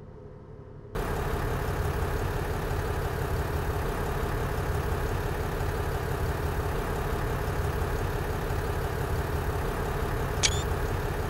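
A diesel railcar engine idles loudly nearby.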